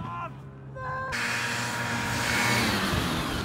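A snowmobile engine runs and roars.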